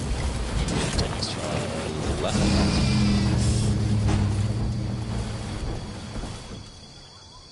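A heavy vehicle engine rumbles steadily, then fades.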